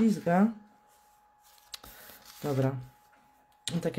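Stiff paper rustles and slides as hands handle it.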